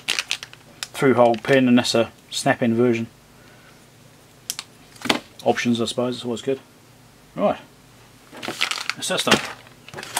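A plastic bag crinkles and rustles.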